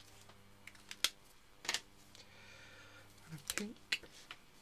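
Plastic marker pens clack as they are set down and picked up.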